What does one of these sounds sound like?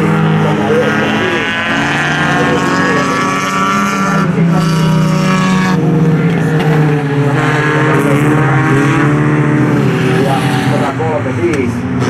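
Racing car engines roar loudly as cars speed past.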